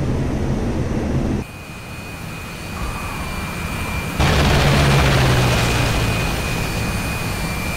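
A jet engine roars with a steady high whine.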